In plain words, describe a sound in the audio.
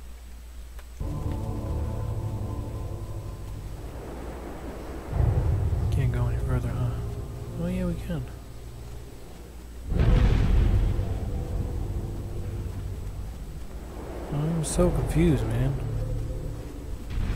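Wind howls loudly across snow.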